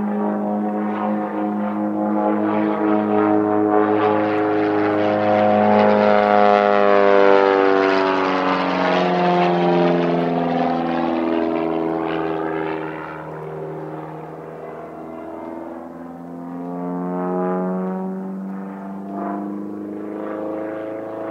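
A small propeller plane's engine drones overhead, rising and falling in pitch as it loops and passes.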